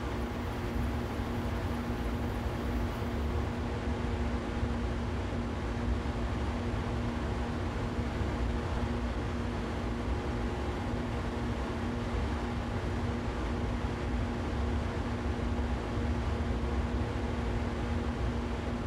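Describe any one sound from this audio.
An electric train hums steadily as it runs along the rails.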